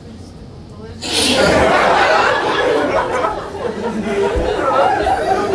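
An audience laughs loudly in a room.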